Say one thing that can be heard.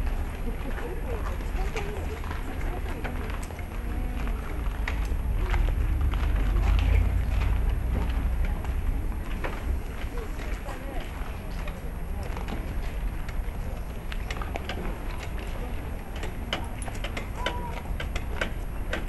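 Footsteps of many people shuffle along a street.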